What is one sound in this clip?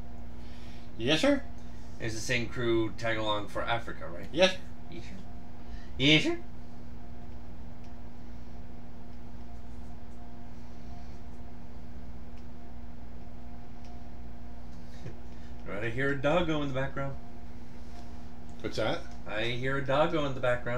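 A middle-aged man talks calmly into a close microphone, pausing between phrases.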